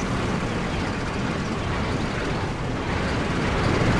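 Water flows beneath a broken bridge.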